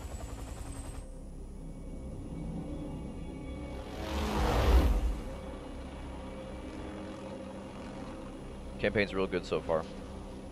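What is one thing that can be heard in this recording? Helicopter rotors drone steadily in the distance.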